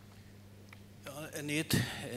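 An elderly man speaks into a microphone through loudspeakers in a large hall.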